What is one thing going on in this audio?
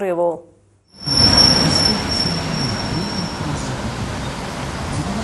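A van drives past on a road.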